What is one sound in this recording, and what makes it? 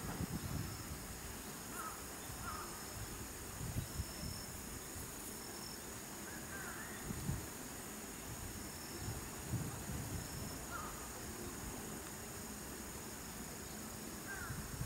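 Chimpanzees rustle through dry grass as they move.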